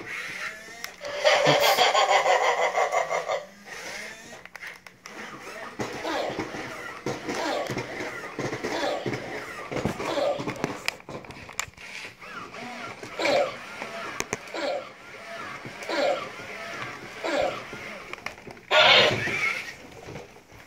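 A toy robot plays loud, buzzy electronic sounds.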